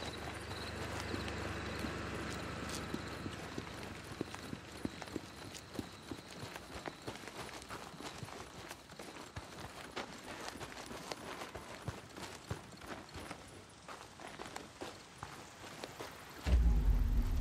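Footsteps crunch on gravel as a man runs.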